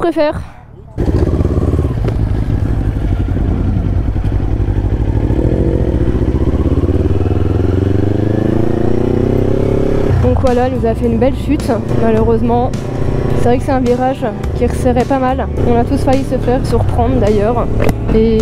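A motorcycle engine roars steadily as it rides, rising in pitch as it speeds up.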